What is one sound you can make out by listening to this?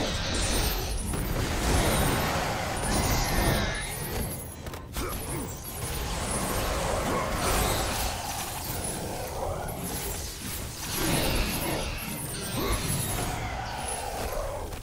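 Blows strike enemies with heavy thuds.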